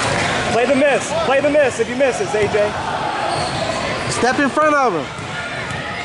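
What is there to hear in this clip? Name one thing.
Young children shout and cheer loudly in a large echoing hall.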